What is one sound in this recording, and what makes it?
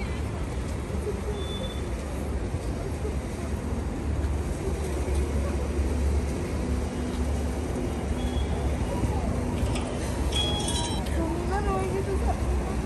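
A woman speaks softly and comfortingly nearby.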